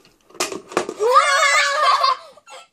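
A young girl screams loudly in excitement.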